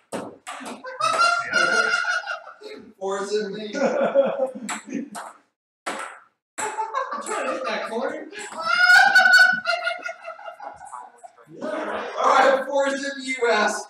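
Young men talk and laugh loudly nearby.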